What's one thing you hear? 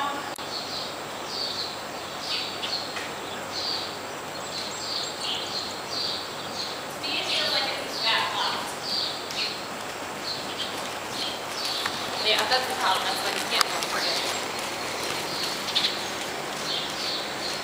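A horse's hooves thud softly on a soft arena floor.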